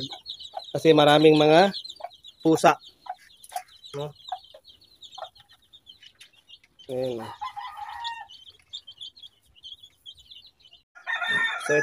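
Chicks peep with high, rapid chirps throughout.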